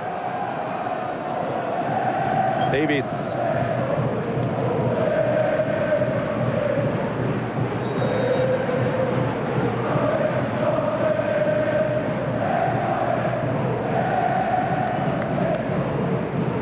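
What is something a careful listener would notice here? A large stadium crowd chants and sings loudly, echoing in the open air.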